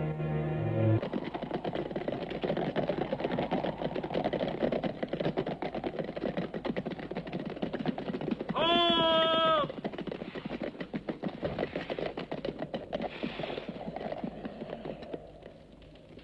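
Horses gallop over dry ground, hooves drumming.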